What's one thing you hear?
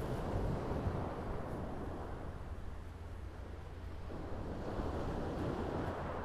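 Wind blows over the microphone outdoors.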